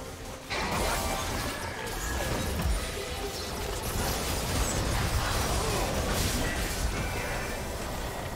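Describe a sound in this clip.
Blows and blasts thud in quick succession.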